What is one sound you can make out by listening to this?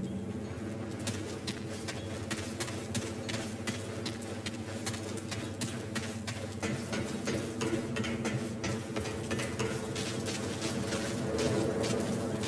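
Footsteps tread steadily on hard floors.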